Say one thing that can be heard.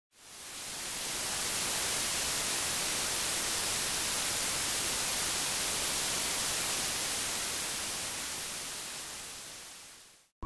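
Television static hisses loudly and steadily.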